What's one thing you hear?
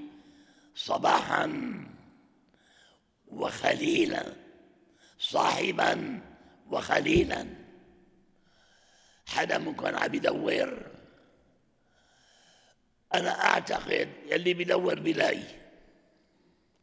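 An elderly man speaks slowly and solemnly into a microphone, in short phrases with pauses, in an echoing hall.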